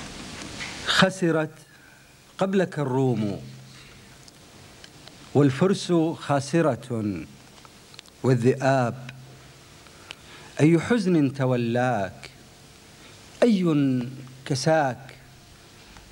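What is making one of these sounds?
A man recites slowly into a microphone in short phrases, heard through a loudspeaker.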